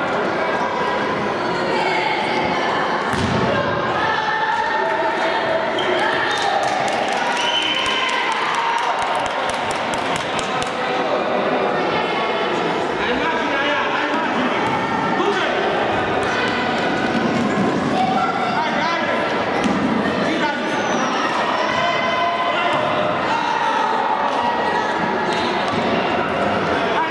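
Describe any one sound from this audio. A ball thuds against a hard floor.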